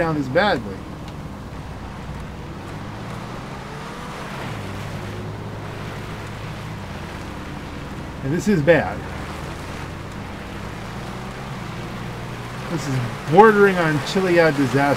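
A van's engine hums low and steady as it climbs rough ground.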